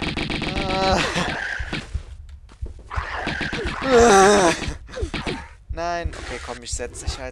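A creature screeches and snarls.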